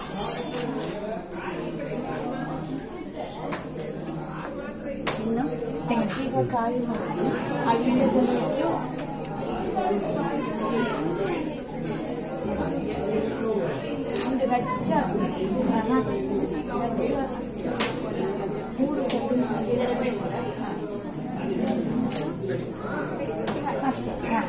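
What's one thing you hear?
Several women talk over one another nearby.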